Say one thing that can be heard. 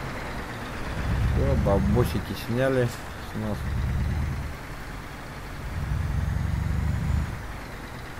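A truck engine revs as the truck pulls away.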